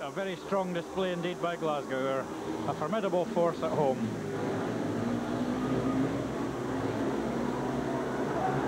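Speedway motorcycle engines roar and whine around a track.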